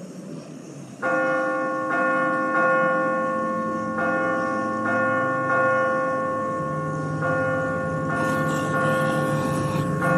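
A large bell rings loudly, struck over and over.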